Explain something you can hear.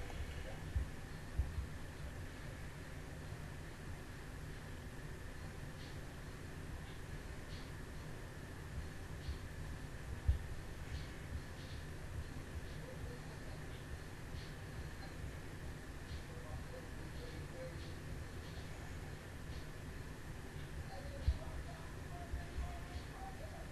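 Soft thumps and breaths sound into cupped hands close to a microphone.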